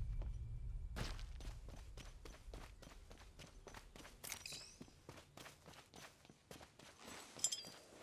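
Quick footsteps thud on a hard path.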